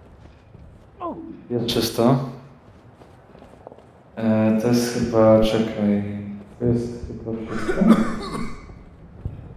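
A man talks in a low voice close by.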